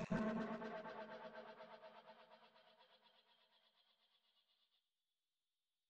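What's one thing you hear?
A pulsing electronic tune plays and quickly fades away.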